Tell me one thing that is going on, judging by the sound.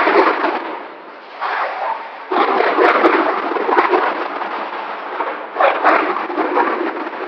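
A large ensemble of frame drums beats out a rhythm together in a big echoing hall.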